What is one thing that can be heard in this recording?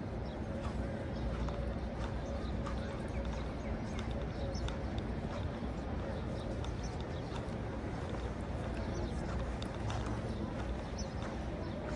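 Footsteps tap on a hard walkway nearby.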